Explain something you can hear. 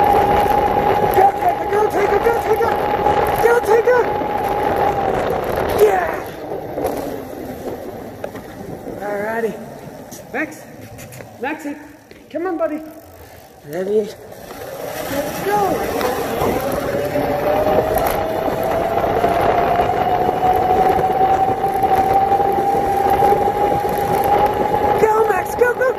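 A scooter motor whines steadily, dropping away midway and rising again.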